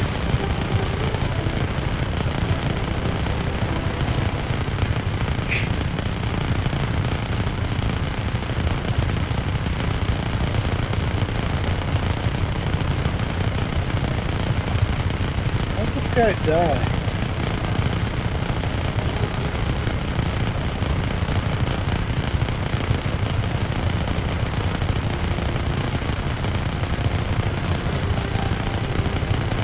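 A helicopter's rotor thumps steadily and loudly overhead.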